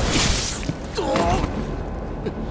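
A heavy blade strikes with a loud metallic clash.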